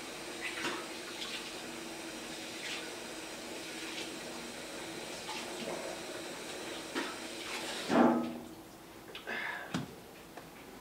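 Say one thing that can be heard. Small objects knock and clatter nearby as a man handles them.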